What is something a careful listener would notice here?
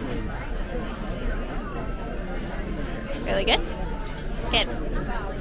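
A crowd of men and women chatter steadily nearby.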